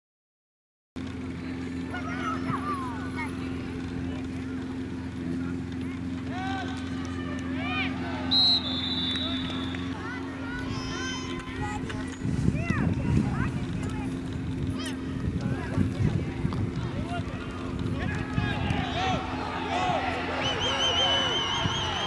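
Young boys shout and call out outdoors.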